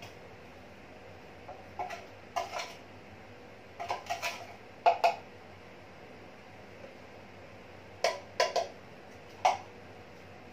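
A spoon scrapes and clinks against a small box.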